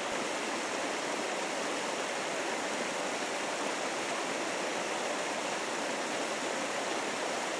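Light rain patters steadily on leaves and moss.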